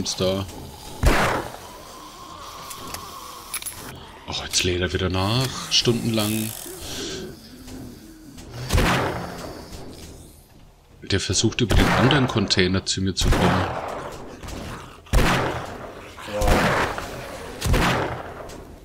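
Revolver shots bang sharply.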